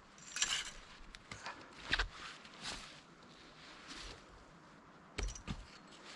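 Wood chips crack and split off a log.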